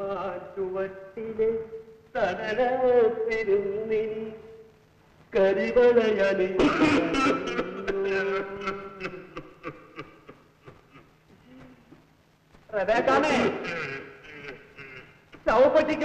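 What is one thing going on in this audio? A young man sings and talks with feeling, close by.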